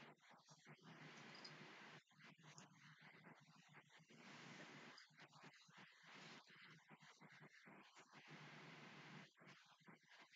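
A young woman talks calmly, close to the microphone.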